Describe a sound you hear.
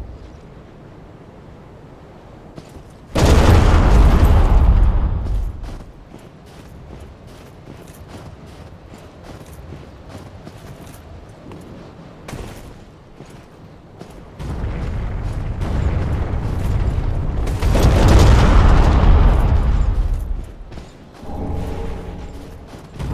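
Armoured footsteps crunch quickly over snow and stone.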